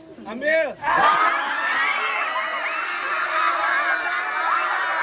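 A crowd of young men cheers and whoops loudly.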